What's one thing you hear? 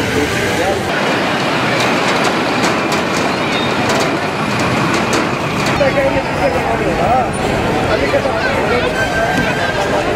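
Traffic engines hum and motorbikes rumble along a busy street.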